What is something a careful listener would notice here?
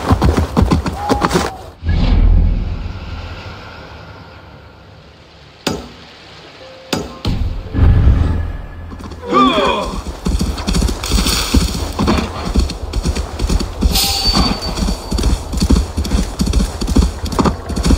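Hooves thud rapidly through snow as a reindeer gallops.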